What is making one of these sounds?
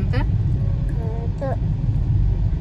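A small child makes a short high-pitched vocal sound up close.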